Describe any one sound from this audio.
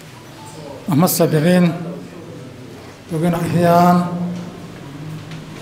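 A second elderly man speaks calmly into a microphone.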